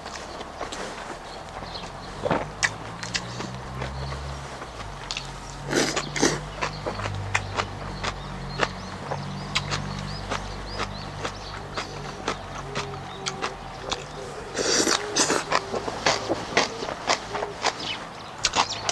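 Birds chirp outdoors in the background.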